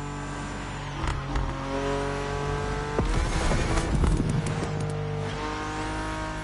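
A race car exhaust crackles and pops loudly.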